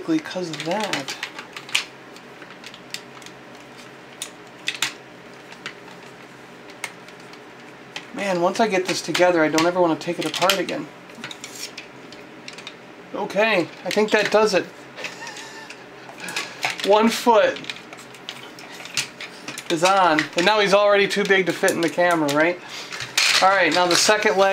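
Plastic toy parts click and rattle as they are handled.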